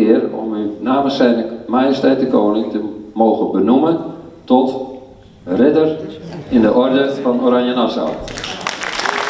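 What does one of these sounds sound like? An elderly man speaks calmly into a microphone over loudspeakers in an echoing hall.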